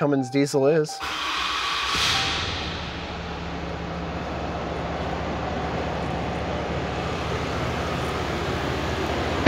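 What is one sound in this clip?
A truck engine starts and idles with a steady low rumble.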